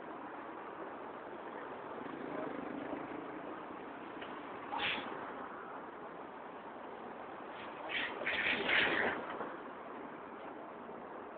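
Traffic rumbles steadily past on a busy street outdoors.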